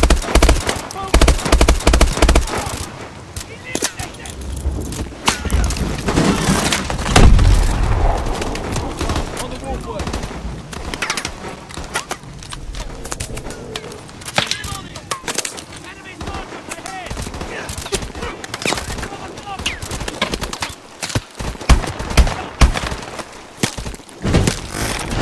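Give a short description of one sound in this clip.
Gunshots fire in rapid bursts, ringing out with echoes.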